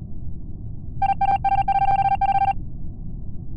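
A rapid electronic beeping plays.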